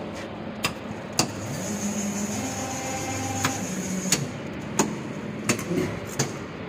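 An injection molding machine hums as it runs.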